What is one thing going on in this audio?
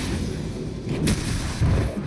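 Spell effects crackle and whoosh in a fight between game characters.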